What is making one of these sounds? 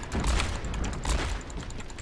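A revolver fires a shot.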